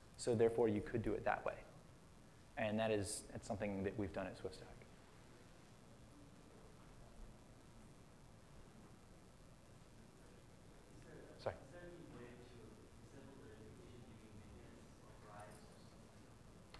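A man speaks calmly through a microphone in a large room, pausing often.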